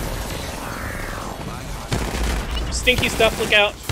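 An explosion booms with a bright blast.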